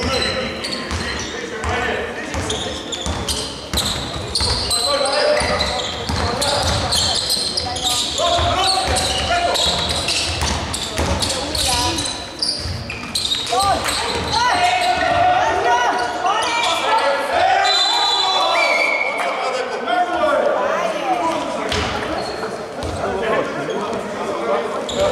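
A basketball bounces on a wooden court in a large echoing hall.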